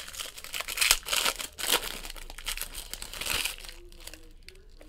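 A foil wrapper crinkles and tears as hands pull it open.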